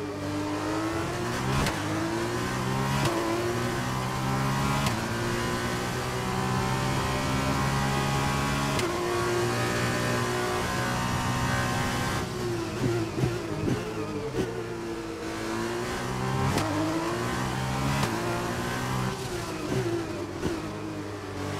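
A racing car engine screams, rising in pitch through each gear and dropping sharply at each gear change.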